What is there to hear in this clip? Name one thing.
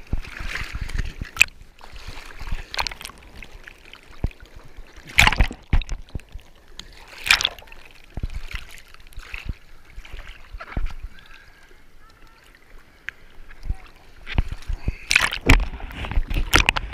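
Water splashes and sloshes against a surfboard as a surfer paddles.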